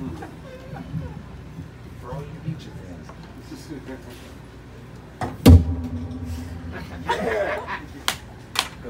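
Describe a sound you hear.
An upright bass plucks a walking line.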